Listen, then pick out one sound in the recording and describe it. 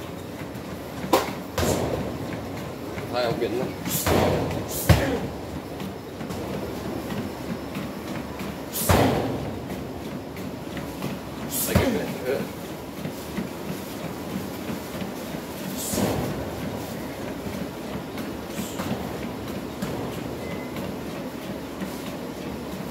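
Bare feet shuffle and slap on a tiled floor.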